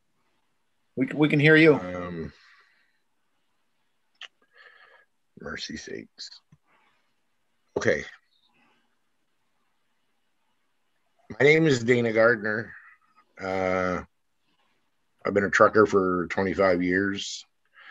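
An elderly man speaks over an online call, in short bursts with pauses.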